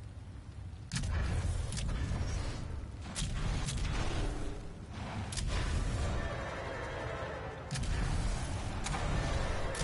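A deep, fiery roar rumbles steadily.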